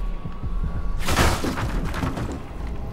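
Wooden planks smash and splinter.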